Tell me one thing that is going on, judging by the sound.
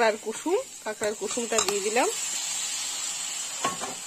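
Beaten egg pours into a hot pan and hisses.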